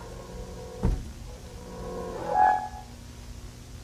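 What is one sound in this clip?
A man blows short wavering notes on a small harmonica.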